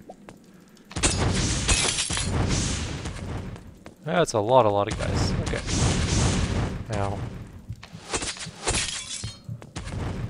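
Magical bursts whoosh and hiss.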